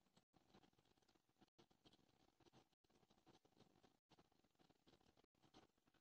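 A crayon scratches softly on paper.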